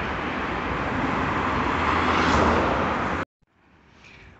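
Traffic rumbles along a street nearby.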